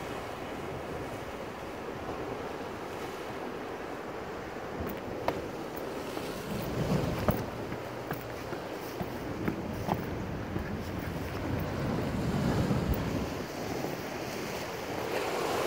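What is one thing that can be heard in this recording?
Ocean waves crash and wash against rocks close by.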